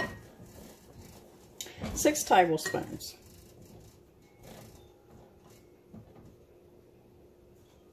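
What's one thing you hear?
A spoon stirs flour in a glass bowl.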